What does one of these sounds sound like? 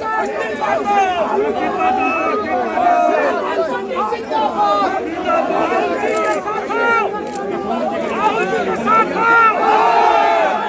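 A young man shouts slogans with animation.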